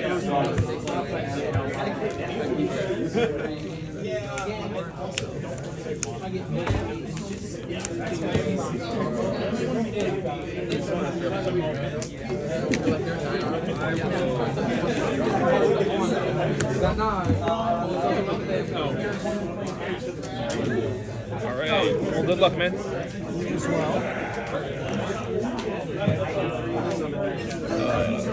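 Playing cards slide and tap on a soft mat.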